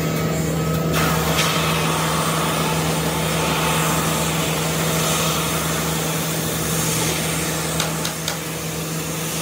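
A wooden plank grinds as it feeds through a sanding machine.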